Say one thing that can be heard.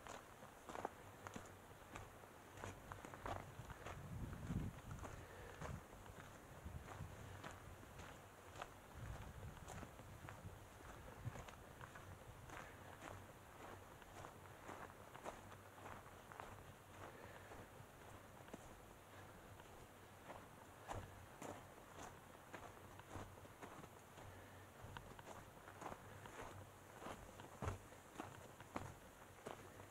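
Footsteps crunch on a dry dirt trail.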